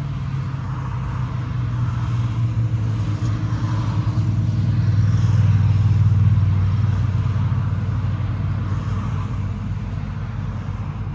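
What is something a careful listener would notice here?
A car drives past on a nearby road, growing louder and then fading.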